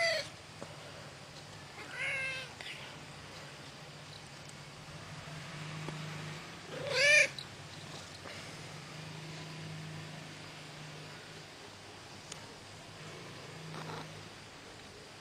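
A cat purrs softly close by.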